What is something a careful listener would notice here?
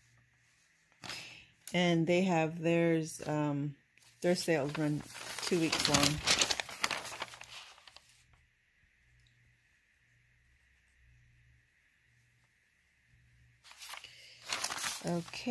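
Paper rustles and crinkles as a flyer is handled.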